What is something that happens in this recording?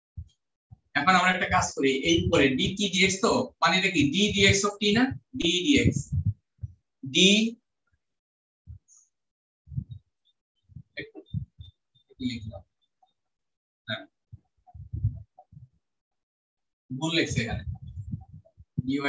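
A man lectures in an online class, heard through a laptop microphone.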